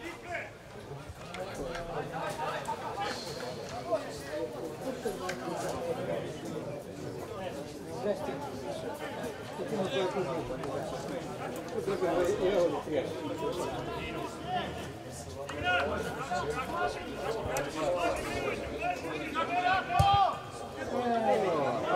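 Men shout to each other across an open football pitch in the distance.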